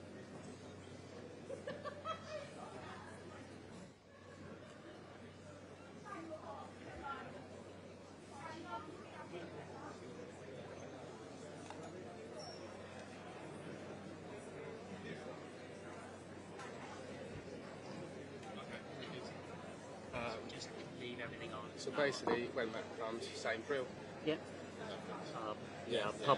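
An audience murmurs and chatters in a large echoing hall.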